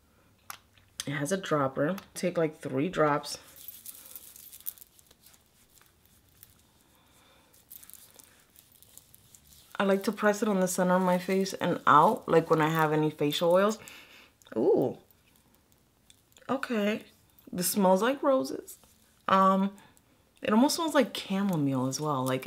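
A woman talks calmly and close up, in short bursts.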